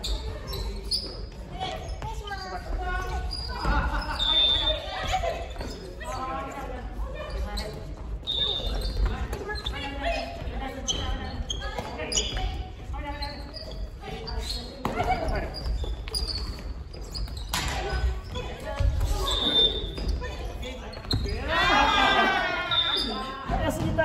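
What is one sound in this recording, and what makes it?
Shoes squeak on a wooden floor in a large echoing hall.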